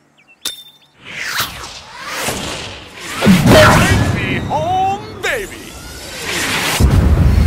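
A golf ball whooshes loudly through the air.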